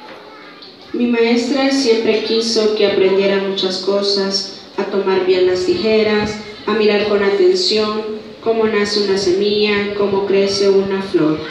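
A large group of children sings loudly together.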